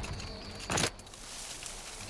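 Tall grass rustles as someone pushes through it.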